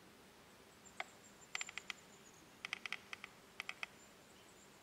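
A small bird chirps nearby in short bursts.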